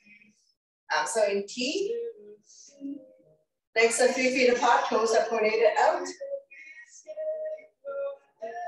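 A woman speaks clearly into a nearby microphone, giving instructions with animation.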